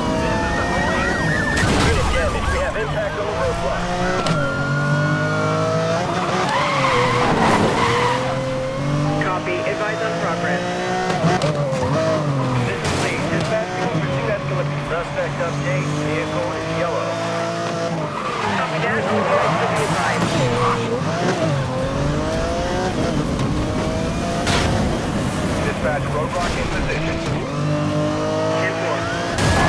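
A sports car engine roars and revs at high speed.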